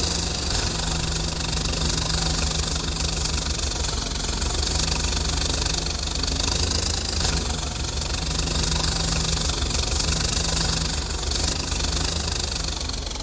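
A tractor engine idles with a steady, low chugging.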